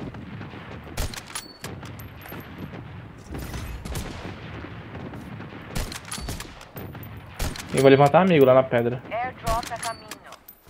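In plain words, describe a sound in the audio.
A rifle fires single shots at intervals.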